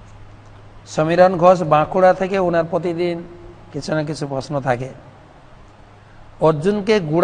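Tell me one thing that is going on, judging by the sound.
A man speaks calmly into a close microphone, reading out in bursts with pauses.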